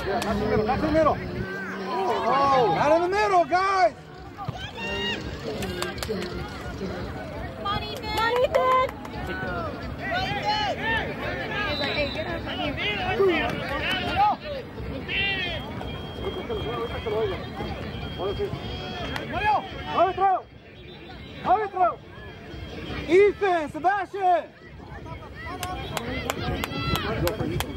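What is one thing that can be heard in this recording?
Young men shout and call to each other outdoors on an open field.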